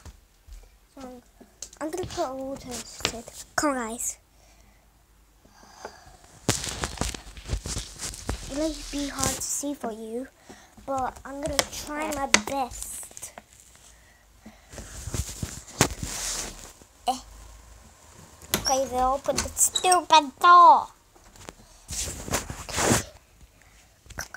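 A young boy talks close to a phone microphone with animation.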